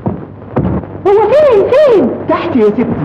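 A woman speaks in a high, lively voice.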